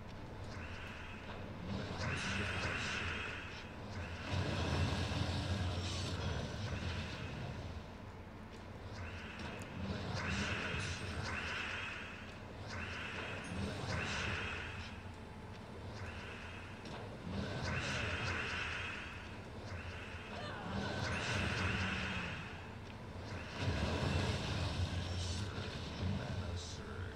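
Game sound effects chime and whoosh as gems match and burst.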